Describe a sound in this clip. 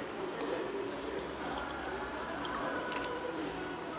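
A man gulps water from a bottle.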